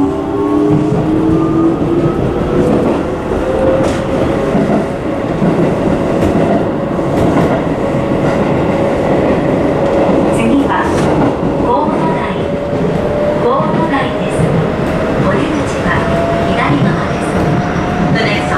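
A train's motor whines, rising slowly in pitch.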